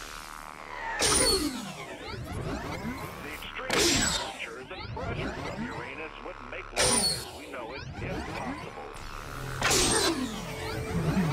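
Laser blasts fire with sweeping whooshes.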